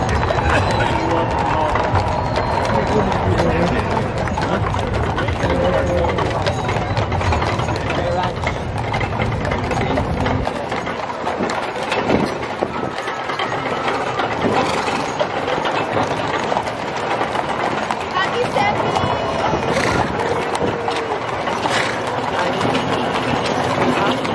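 Wagon wheels rumble along the road.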